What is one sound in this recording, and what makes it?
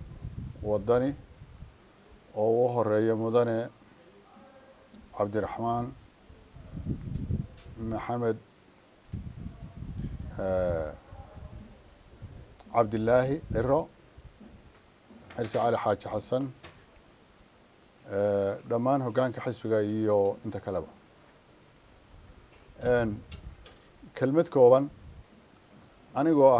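An older man speaks firmly into a microphone, with pauses between phrases.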